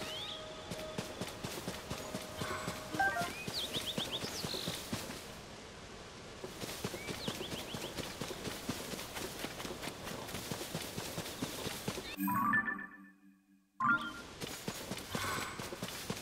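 Quick footsteps patter through grass.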